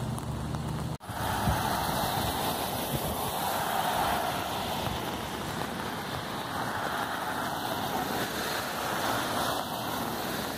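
Cars swish past on a wet road.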